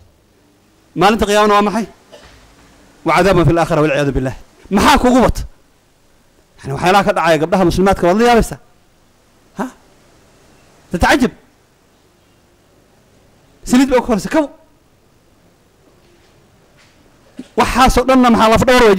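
A middle-aged man speaks into a microphone in short, emphatic bursts with pauses between.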